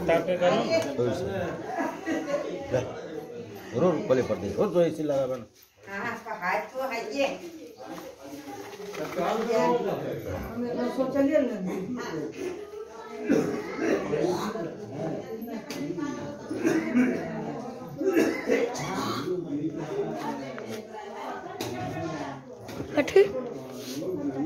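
Several people talk nearby.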